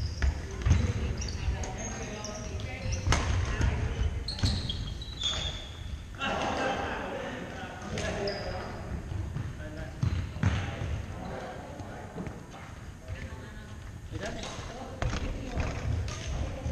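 Badminton rackets strike shuttlecocks with sharp pops.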